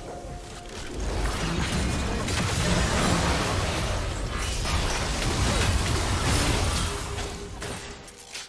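Magic blasts and clashing effects from a video game battle whoosh and crackle.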